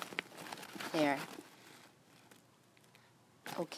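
A leather bag rustles and creaks as it is handled.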